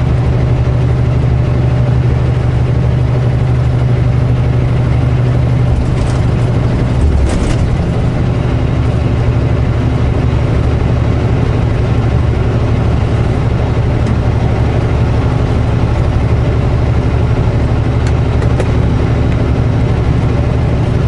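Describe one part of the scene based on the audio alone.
Tyres roar on a highway.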